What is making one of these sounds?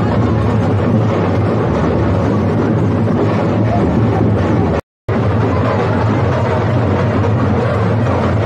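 A large crowd chatters and shouts close by.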